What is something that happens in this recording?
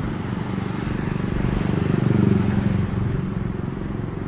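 A motorbike passes close by.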